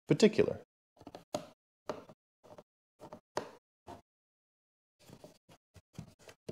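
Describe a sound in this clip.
A screwdriver clicks and scrapes against a screw.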